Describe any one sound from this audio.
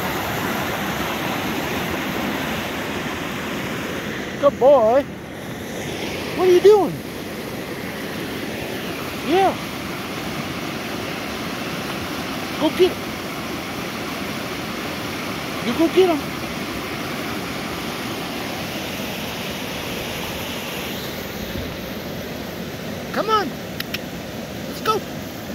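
A stream rushes loudly over rocks nearby.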